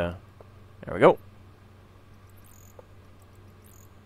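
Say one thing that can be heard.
A wooden lid creaks open.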